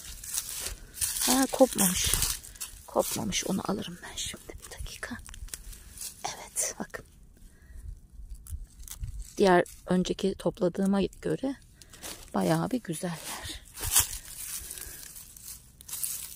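Plants rustle and tear as they are pulled from the ground.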